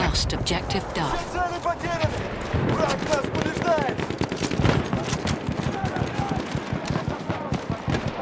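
Rifle shots crack and echo repeatedly.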